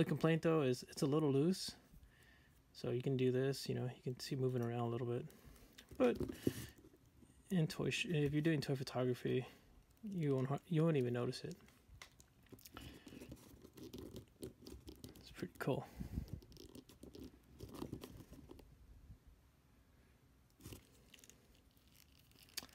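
Small plastic parts click and tap as hands handle a toy figure.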